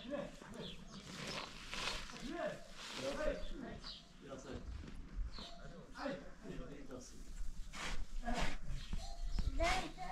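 A shovel scrapes and scoops sand.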